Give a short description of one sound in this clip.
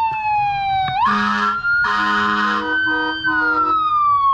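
A vehicle air horn blasts twice.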